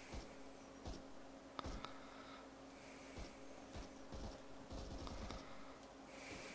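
Footsteps tread softly on a hard floor.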